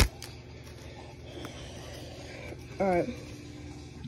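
Trading cards slide and rustle between fingers.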